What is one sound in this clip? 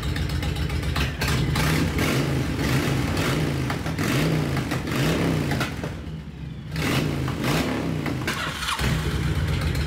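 A motorcycle engine revs up and down several times.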